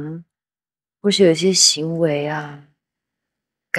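A young man speaks with surprise close by.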